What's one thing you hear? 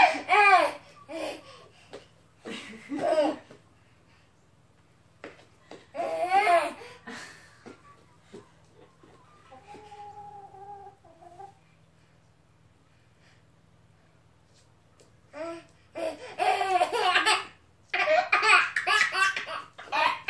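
A baby squeals and laughs with excitement close by.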